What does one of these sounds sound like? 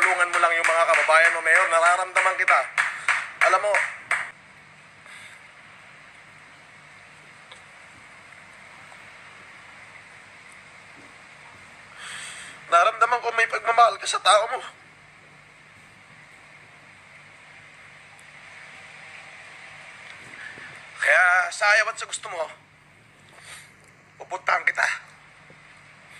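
A man speaks tearfully and emotionally close to a phone microphone, in bursts with long pauses.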